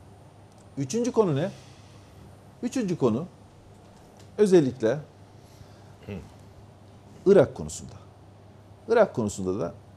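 A middle-aged man speaks calmly in short phrases into a close microphone.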